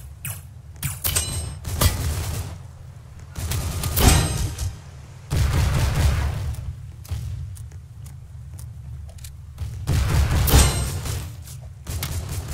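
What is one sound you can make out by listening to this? Guns fire in loud bursts of shots.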